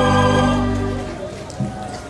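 A large choir of women sings a held chord together, then stops.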